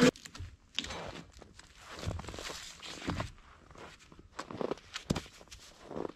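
Footsteps crunch on snow outdoors.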